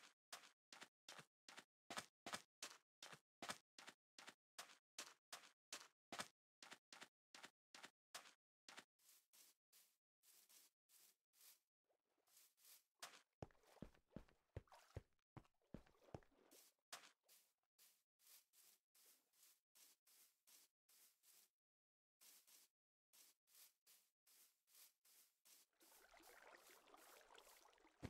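Quick, even footsteps crunch over sand and grass.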